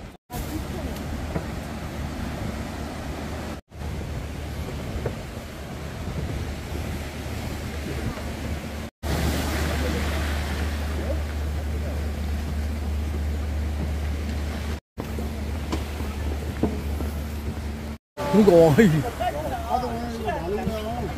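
Waves wash and break against rocks.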